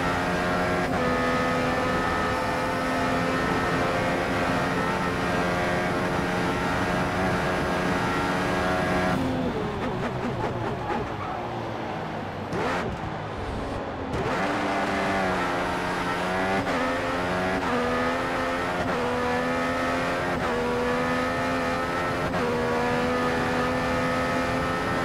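A racing car engine screams at high revs, drops low while slowing for a corner, then climbs again through quick gear changes.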